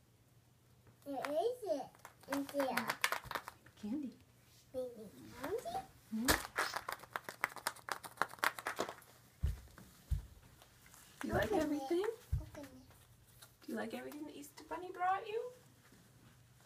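A little girl talks in a high voice, close by.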